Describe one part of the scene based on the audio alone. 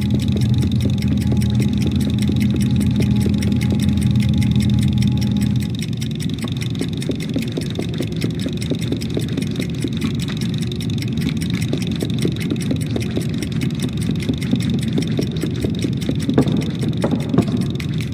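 A small child's footsteps patter across wooden floorboards.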